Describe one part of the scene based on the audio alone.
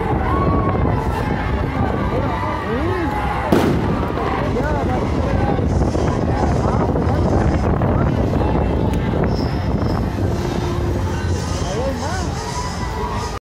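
A large crowd outdoors chants and shouts loudly.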